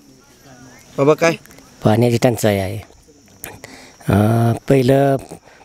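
An elderly man speaks with animation into a nearby microphone.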